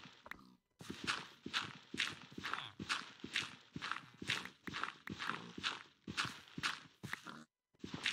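Dirt crunches repeatedly as a shovel digs into it.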